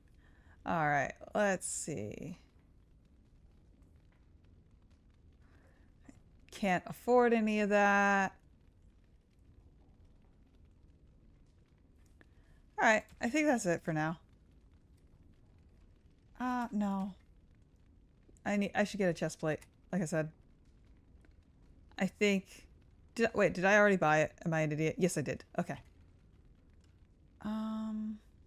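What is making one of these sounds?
A young woman talks with animation in short bursts, close to a microphone.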